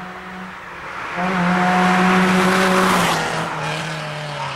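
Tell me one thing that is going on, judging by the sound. Tyres hiss on the road as the car passes.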